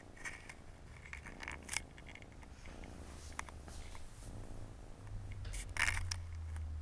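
A cat purrs steadily close by.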